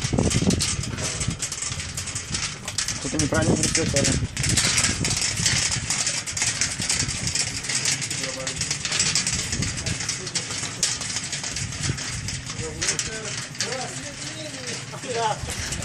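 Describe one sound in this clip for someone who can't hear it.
Metal prayer wheels rattle and creak as they are spun one after another.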